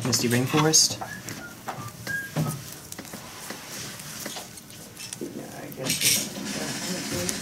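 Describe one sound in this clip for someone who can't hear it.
Playing cards rustle and slide as they are picked up and fanned in the hand.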